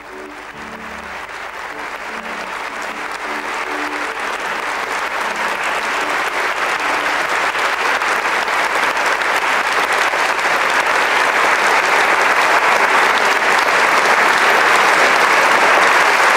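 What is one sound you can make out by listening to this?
An audience applauds in a large hall, the clapping growing louder.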